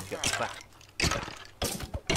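A sword strikes a rattling skeleton.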